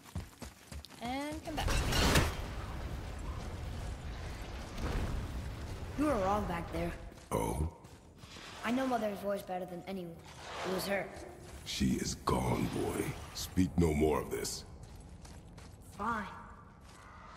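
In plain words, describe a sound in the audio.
A young woman talks through a headset microphone.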